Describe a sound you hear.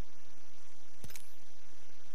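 A short electronic menu click sounds.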